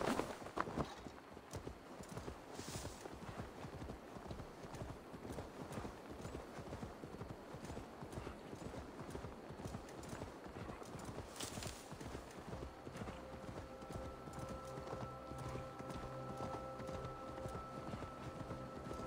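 Horse hooves thud steadily on grass at a gallop.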